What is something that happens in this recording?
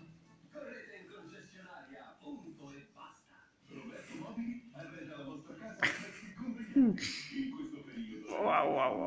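A small dog growls playfully up close.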